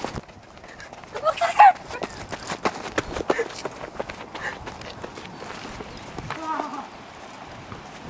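Footsteps crunch quickly on dry sandy ground.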